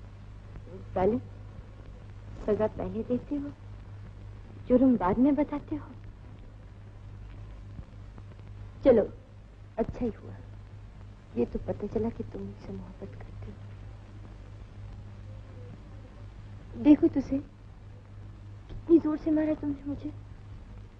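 A young woman speaks softly and tenderly, close by.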